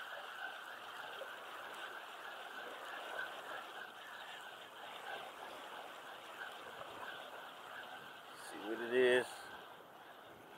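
Wind blows and water laps against rocks.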